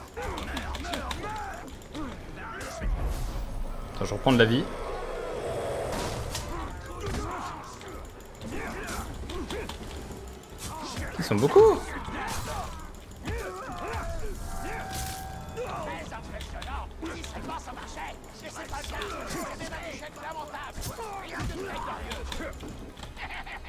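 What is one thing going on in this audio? Swords clash and clang.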